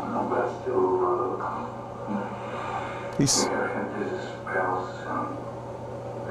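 An elderly man speaks calmly to an audience.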